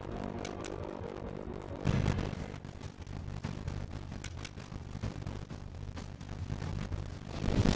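A campfire crackles and burns.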